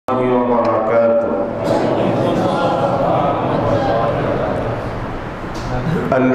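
A young man preaches into a microphone with a chanting, drawn-out voice, heard through loudspeakers in an echoing room.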